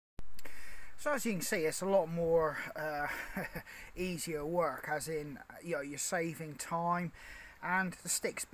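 A middle-aged man talks calmly close up.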